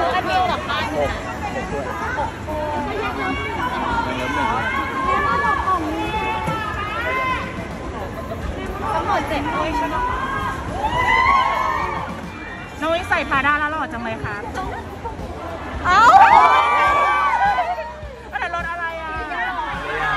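A crowd of young women chatters and squeals nearby.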